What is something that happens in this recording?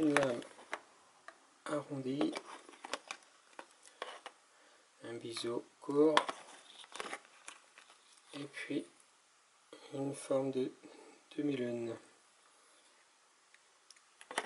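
Stiff plastic packaging crinkles and clicks as it is handled.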